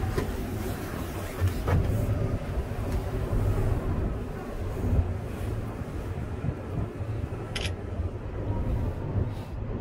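Wind rumbles and buffets outdoors against a moving cable car cabin.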